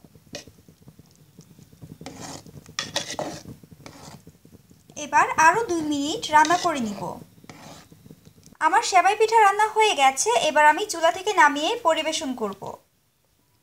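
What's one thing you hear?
A spoon stirs and scrapes in a metal pot of liquid.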